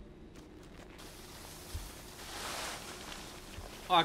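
Dust billows out with a rushing hiss.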